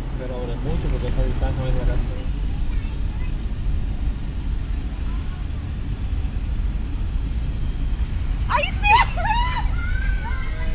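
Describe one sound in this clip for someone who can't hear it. Tyres rumble steadily on the road from inside a moving car.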